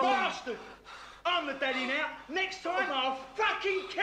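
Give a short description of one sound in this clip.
A young man snarls and shouts angrily through a film soundtrack.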